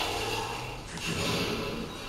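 A metal gate rattles as it is pushed.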